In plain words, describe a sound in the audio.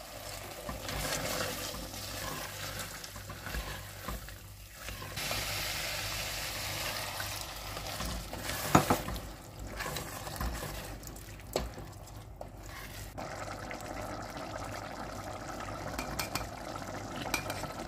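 A spoon scrapes and stirs a thick stew in a metal pot.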